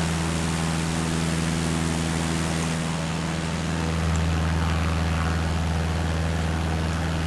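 Wind rushes past the plane.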